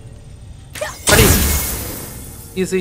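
A crystal shatters with a loud bursting crash.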